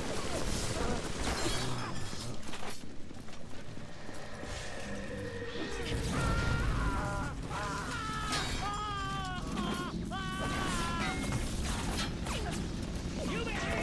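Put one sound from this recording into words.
A weapon fires with sharp bangs.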